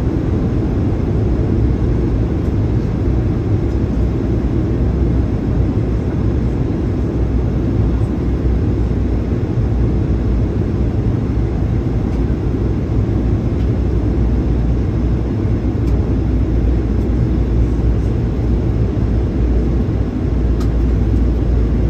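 Sea waves wash and rush steadily close by.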